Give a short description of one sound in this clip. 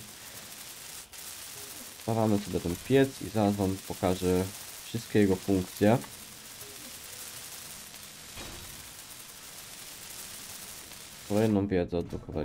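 A welding torch hisses and crackles steadily.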